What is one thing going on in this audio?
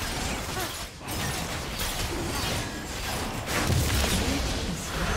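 Video game combat sound effects clash and whoosh.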